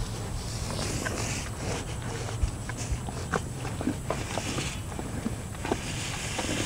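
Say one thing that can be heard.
A cow crunches and chews food pellets close by.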